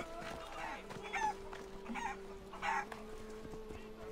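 Chickens cluck nearby.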